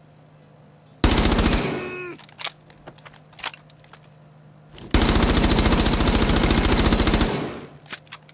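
A submachine gun fires rapid, loud bursts.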